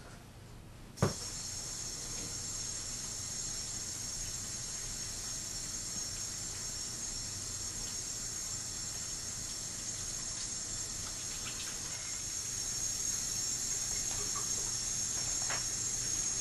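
Water runs steadily from a tap into a sink.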